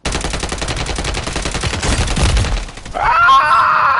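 Gunfire and an explosion roar loudly.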